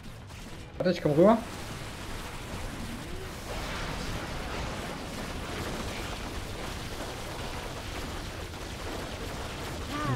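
Fire blasts roar in short bursts.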